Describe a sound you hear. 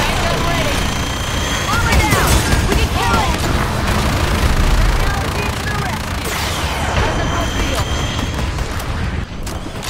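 Energy beams crackle and zap.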